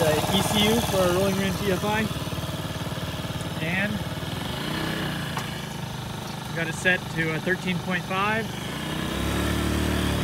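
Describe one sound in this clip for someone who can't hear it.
A small scooter engine idles with a steady putter.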